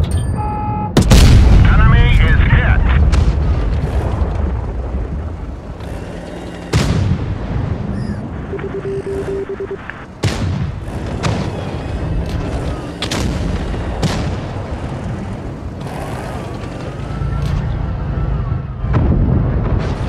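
Tank guns fire with loud booming blasts.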